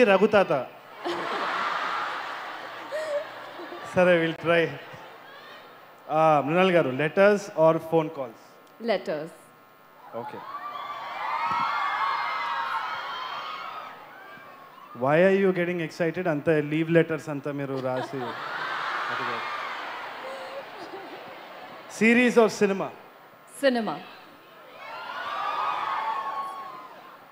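A large crowd cheers and screams in a large hall.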